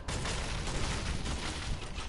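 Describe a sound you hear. A pickaxe swings through the air with a whoosh.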